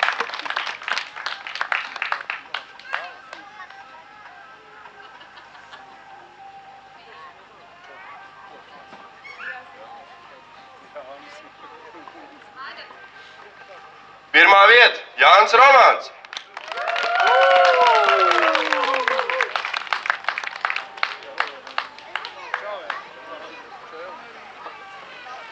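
A small crowd claps and applauds outdoors.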